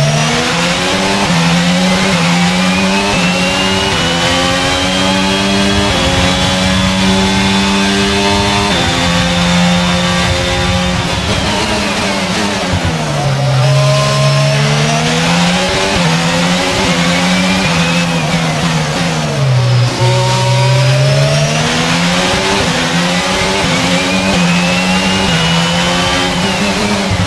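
A racing car engine screams loudly, rising through the gears and dropping as it brakes.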